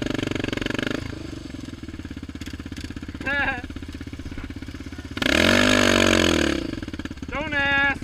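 A single-cylinder sport quad engine idles.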